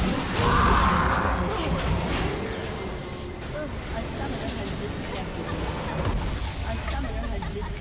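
Magic blasts and clashing weapons burst in a busy fight.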